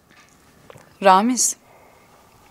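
A young woman asks a question in a tense voice, close by.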